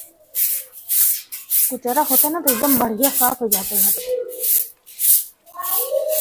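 A broom sweeps a hard floor in rhythmic, swishing strokes.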